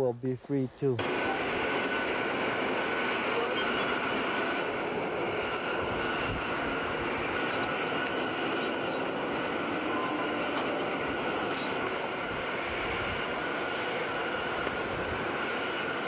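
A large excavator rumbles and grinds as it digs.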